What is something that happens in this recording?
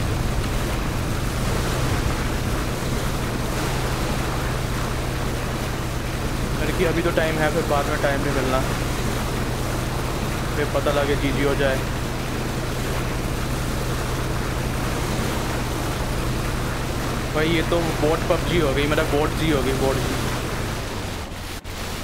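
A boat engine drones steadily.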